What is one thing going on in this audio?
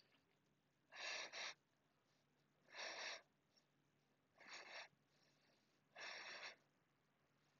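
A woman breathes out slowly and deeply, close by.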